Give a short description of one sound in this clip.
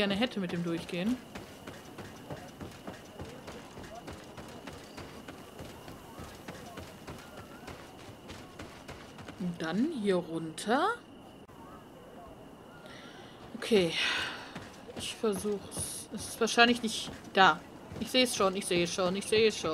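Footsteps run quickly over wooden boards and dirt.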